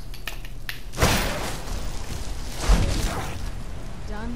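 A magic spell bursts with a whooshing blast, again and again.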